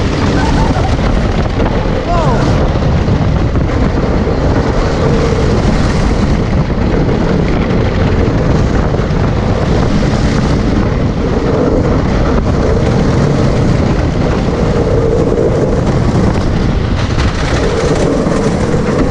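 A roller coaster car rattles and roars loudly along a wooden track.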